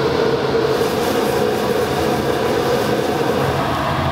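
Sauce bubbles and sizzles in a wok.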